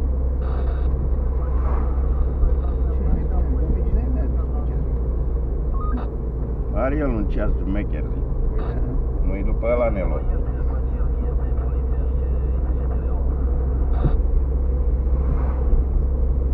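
Tyres rumble over a rough road.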